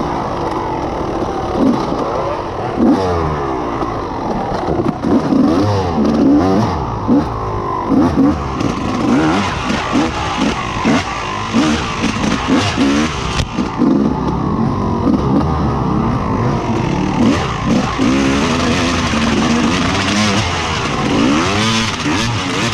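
A dirt bike engine revs up and down loudly and close.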